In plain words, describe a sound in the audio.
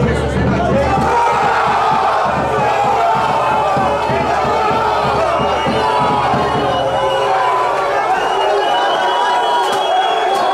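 A crowd of men shouts and chants close by, outdoors.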